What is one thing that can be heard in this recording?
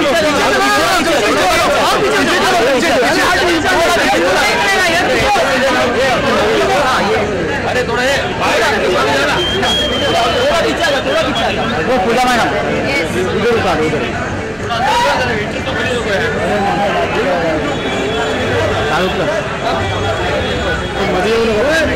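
A crowd of men and women chatter and shout loudly outdoors.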